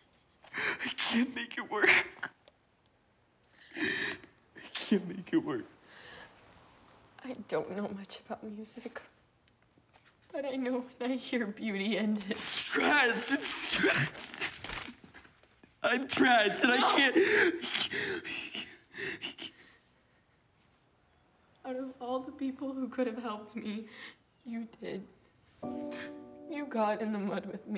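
A young woman speaks in a tearful, upset voice close by.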